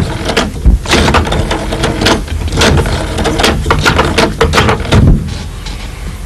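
A man talks on a telephone with animation, close by.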